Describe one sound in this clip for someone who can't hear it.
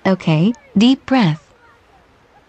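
A young girl squeals in a high, excited voice.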